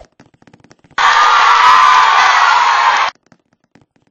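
A stadium crowd cheers loudly for a moment.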